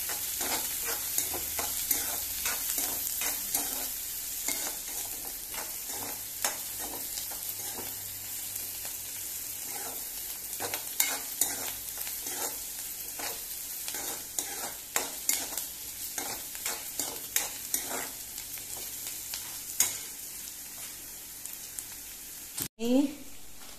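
A metal spatula scrapes and clatters against a frying pan.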